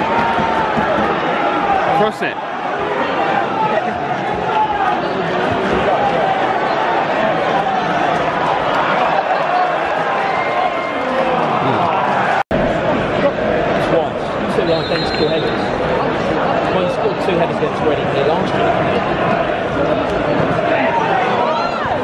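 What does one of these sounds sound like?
A large stadium crowd chants and sings loudly throughout.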